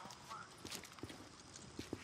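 Boots step on pavement.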